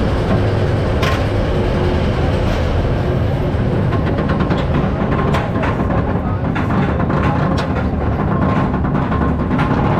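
A roller coaster train rumbles and clatters loudly along its track.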